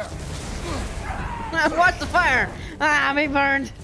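Flames burst and roar.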